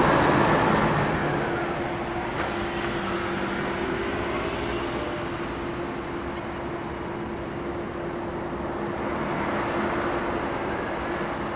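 Cars drive past close by on a road, tyres hissing on the tarmac.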